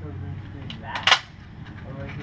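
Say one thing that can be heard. A rifle bolt clacks shut.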